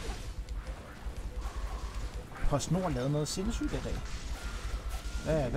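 Swords slash and strike in a video game battle.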